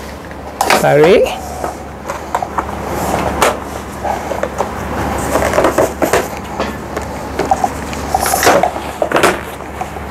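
A folding stroller frame clicks and clatters as it is folded.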